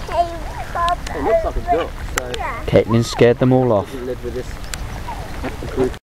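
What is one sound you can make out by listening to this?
Ducks quack nearby.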